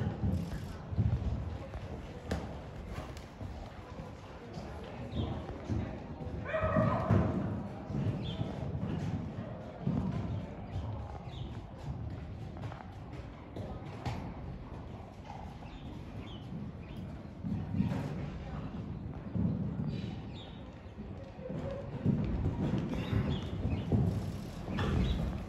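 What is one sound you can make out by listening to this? A horse's hooves thud on soft sand as it canters.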